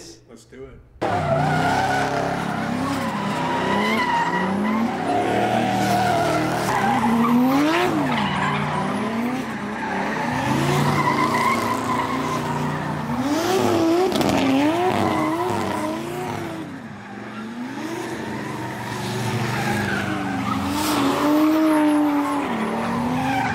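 Car engines rev hard, rising and falling.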